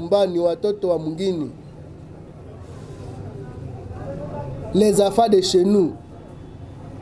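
An older man speaks with animation close to a microphone.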